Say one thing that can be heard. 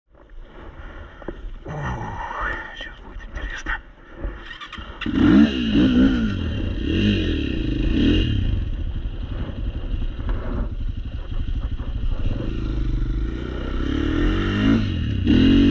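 A dirt bike engine idles and revs up and down loudly close by.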